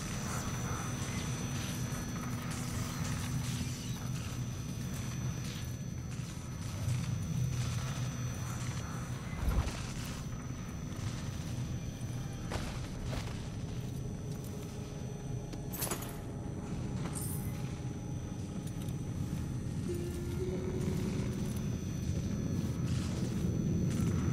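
Soft footsteps pad across a hard floor.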